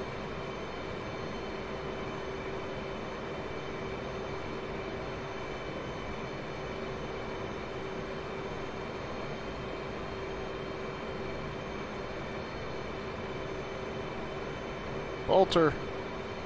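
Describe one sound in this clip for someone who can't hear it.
A jet engine drones steadily from inside a cockpit.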